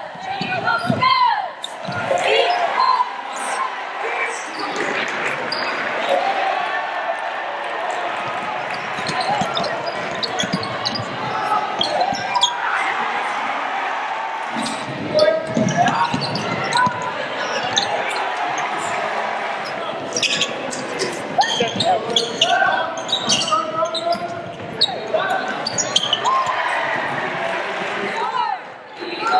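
A crowd cheers and murmurs in a large echoing gym.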